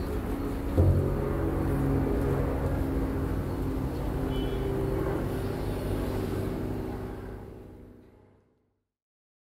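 An acoustic guitar plays a gentle tune, then fades away.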